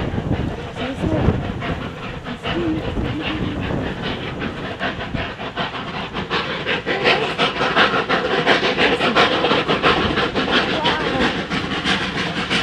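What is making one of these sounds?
A steam locomotive chuffs rhythmically in the distance, growing louder as it approaches.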